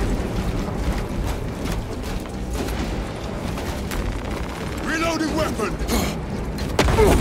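Heavy footsteps thud on rough ground.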